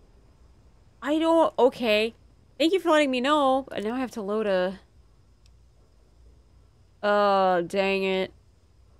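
A young woman speaks with animation, in a high voice, close to a microphone.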